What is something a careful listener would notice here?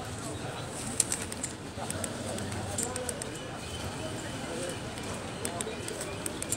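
A large crowd of men murmurs and talks outdoors.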